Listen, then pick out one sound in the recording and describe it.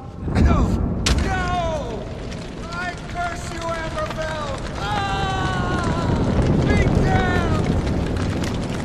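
A man screams in pain.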